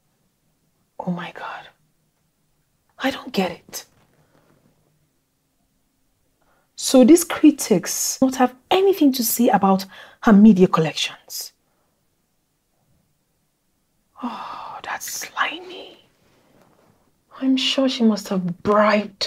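A woman speaks with animation, close by, in bursts with pauses.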